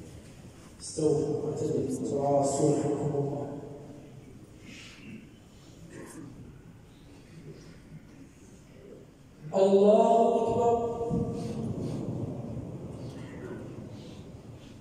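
A man chants in a long, drawn-out voice through a loudspeaker, echoing in a large hall.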